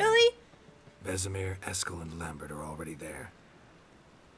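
A deep-voiced man answers briefly.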